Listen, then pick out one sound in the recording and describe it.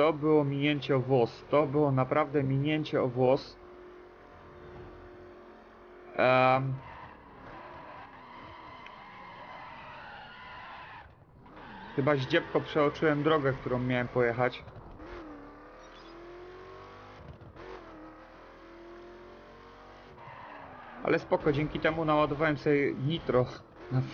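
A car engine roars and revs at speed.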